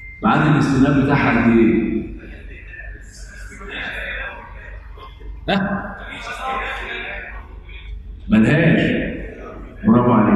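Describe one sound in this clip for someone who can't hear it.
An older man speaks calmly and steadily into a microphone.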